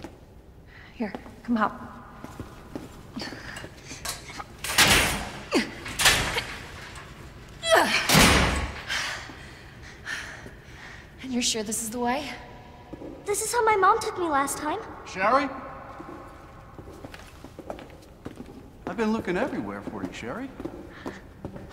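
A young woman speaks with concern.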